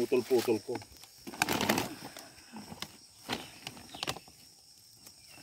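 Plastic sheeting rustles and crinkles as it is handled.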